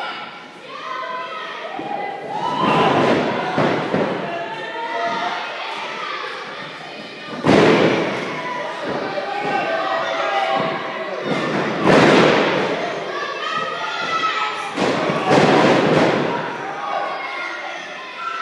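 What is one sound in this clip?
A crowd cheers and chants loudly in a large echoing hall.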